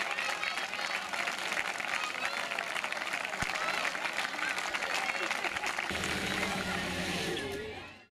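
A large crowd of children cheers and shouts outdoors.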